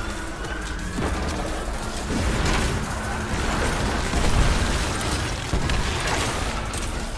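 A bow fires arrows in a video game.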